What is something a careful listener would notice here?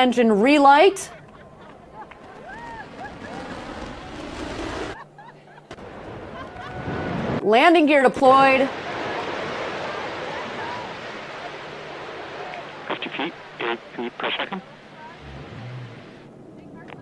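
A rocket engine roars steadily as a booster descends and lands.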